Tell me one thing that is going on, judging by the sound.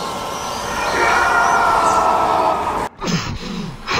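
An electric burst crackles and hums loudly.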